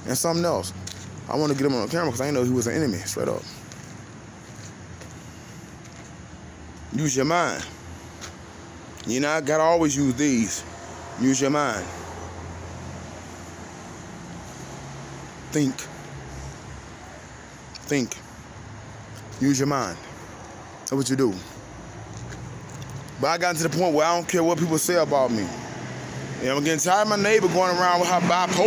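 A middle-aged man talks close to a phone microphone, pausing between phrases.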